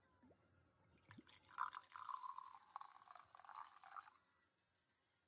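A fizzy drink pours into a glass with a rushing splash.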